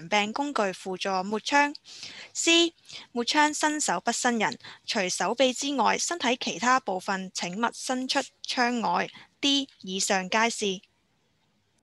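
A woman speaks calmly and clearly through a microphone, as on an online call.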